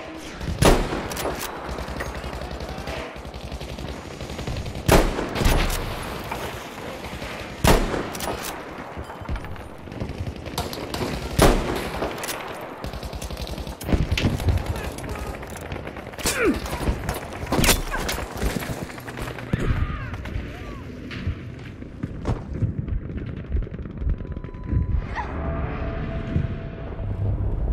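Gunfire and explosions rumble in the distance.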